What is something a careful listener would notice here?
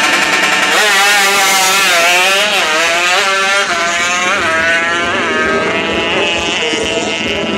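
A motorcycle engine revs loudly and roars away, rising in pitch through each gear.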